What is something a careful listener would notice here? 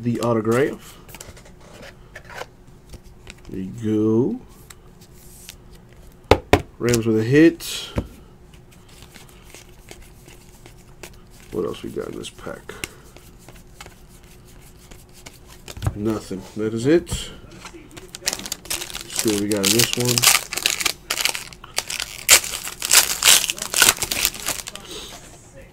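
Trading cards rustle and slide against each other as they are shuffled.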